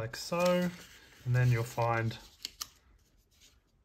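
Paper sheets rustle and slide.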